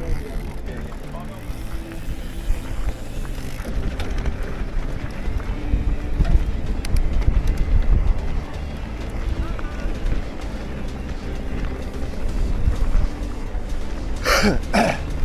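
Bicycle tyres crunch and rattle over a rough dirt track.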